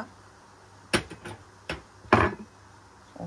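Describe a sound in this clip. A metal knife clinks against a wire rack.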